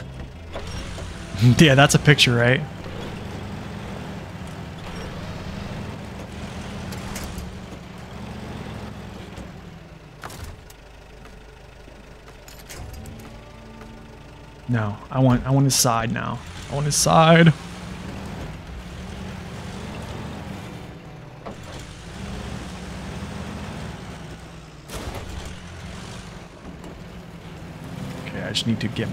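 A truck engine rumbles and strains as the truck crawls over rocks.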